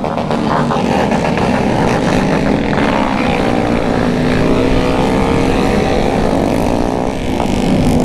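Other motorcycles rev and roar nearby.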